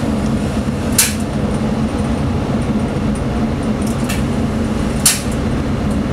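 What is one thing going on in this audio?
Train wheels clack now and then over rail joints.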